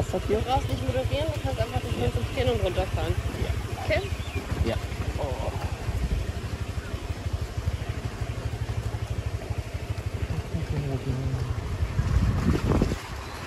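A motorbike engine rumbles steadily close by.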